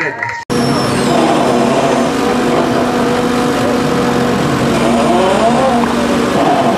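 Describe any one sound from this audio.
A hydraulic crane whines as it swings.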